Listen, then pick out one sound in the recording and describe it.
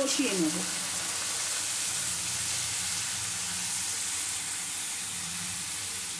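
A spatula stirs and scrapes food in a pan.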